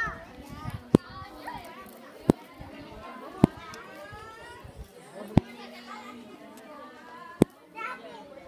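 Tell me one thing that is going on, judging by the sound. A child claps hands sharply several times.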